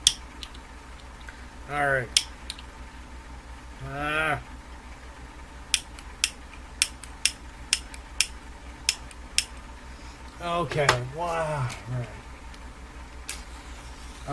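Small objects click and tap as a man handles them.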